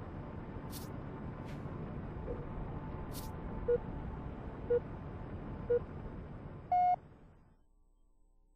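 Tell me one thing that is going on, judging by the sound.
Soft menu music plays.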